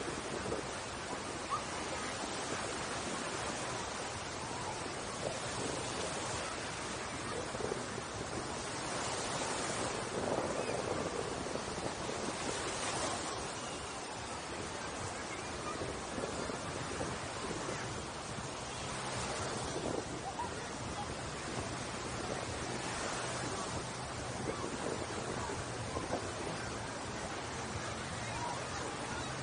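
Waves wash onto the shore, rising and falling.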